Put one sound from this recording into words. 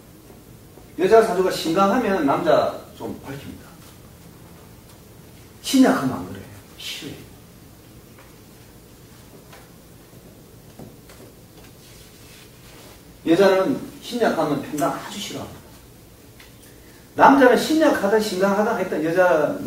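A middle-aged man speaks calmly and clearly close by, with pauses.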